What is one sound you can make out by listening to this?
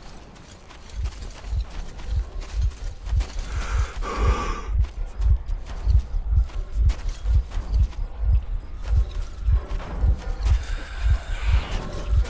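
Heavy footsteps thud steadily on dirt.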